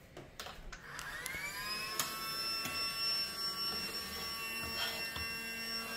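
A toy vacuum cleaner starts up and whirs with a steady high hum.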